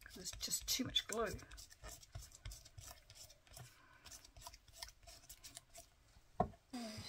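A sponge rubs quickly across card, scratching and scuffing.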